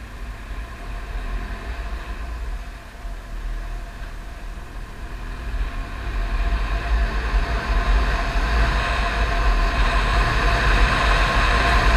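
A motorcycle engine hums steadily and grows louder as the bike speeds up.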